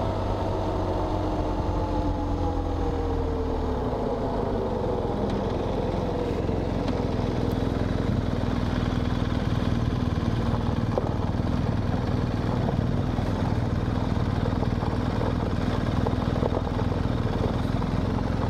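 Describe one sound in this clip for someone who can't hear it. A motorcycle engine hums steadily and then slows down.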